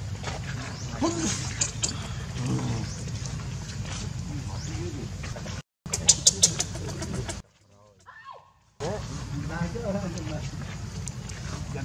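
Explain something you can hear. A baby monkey squeaks and cries shrilly.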